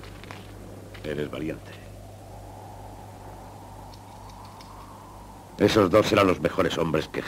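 A man speaks in a low, steady voice close by.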